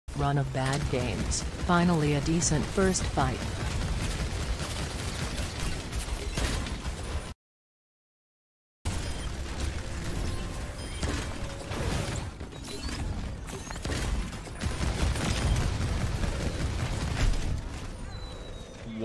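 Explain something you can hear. Gunfire from a video game rattles rapidly.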